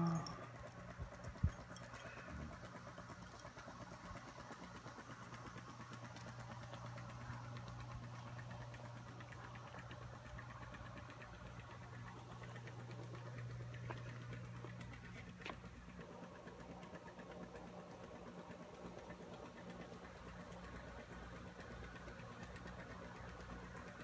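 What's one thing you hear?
A pool cleaner hums steadily under the water.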